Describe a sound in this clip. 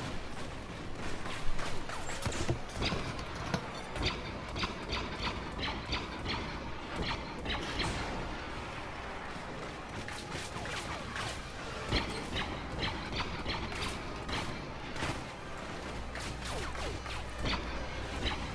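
Blaster shots fire in rapid bursts.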